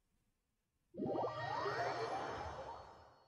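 A low musical tone swells as a game level starts loading.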